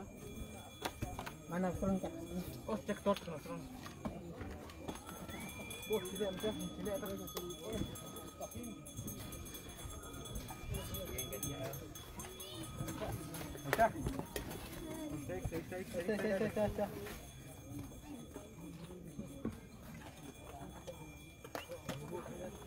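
Men talk nearby outdoors.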